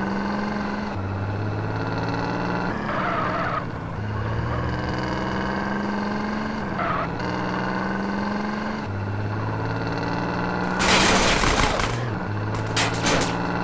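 A pickup truck engine hums steadily as the truck drives along a road.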